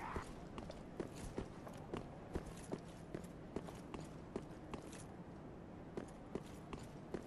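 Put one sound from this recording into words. Armored footsteps clank steadily on stone.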